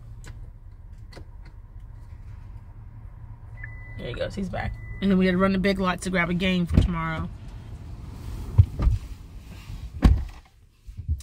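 A low engine hum fills a car.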